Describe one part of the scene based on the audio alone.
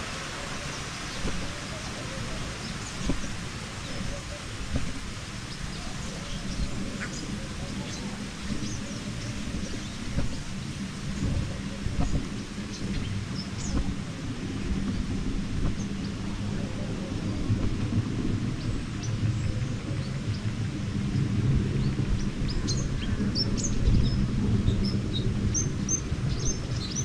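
A ride vehicle rumbles and rattles steadily along a track outdoors.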